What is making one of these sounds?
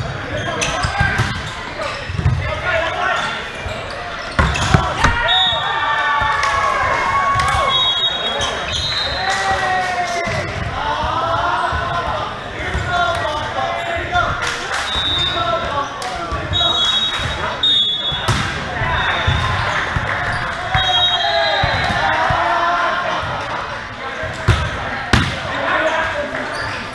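Men shout and call out to each other, echoing in a large hall.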